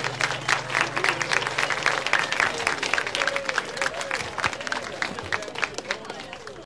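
Hands clap in a quick, steady rhythm.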